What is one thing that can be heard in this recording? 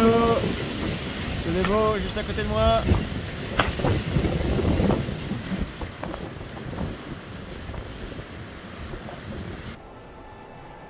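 Water rushes and splashes past the hull of a racing trimaran.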